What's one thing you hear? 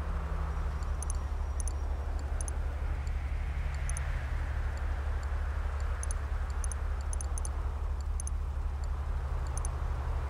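Short, high interface clicks sound again and again.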